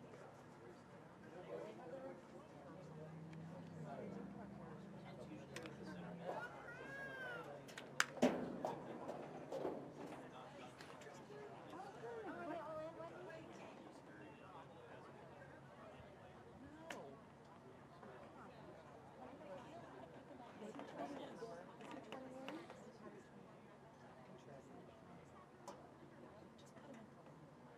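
Young players shout and call out across an open field, heard from a distance.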